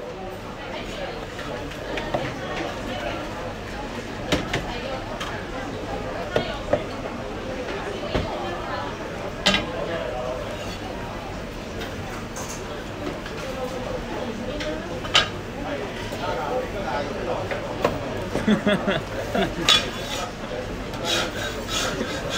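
A cleaver chops sharply on a wooden block.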